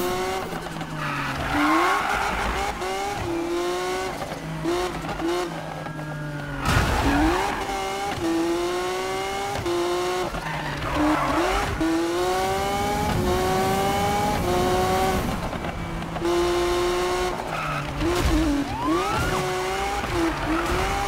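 Tyres screech as a car drifts around corners.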